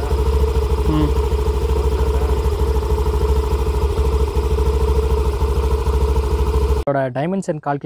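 A scooter engine idles close by with a steady, rapid putter.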